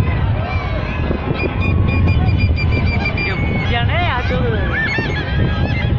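Birds chirp and whistle overhead.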